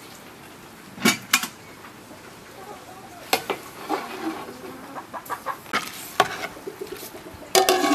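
A metal ladle clinks and scrapes against a metal pot.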